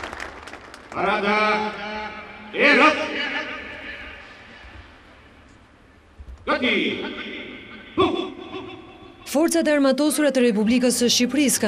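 A large group of men shout loudly in unison outdoors.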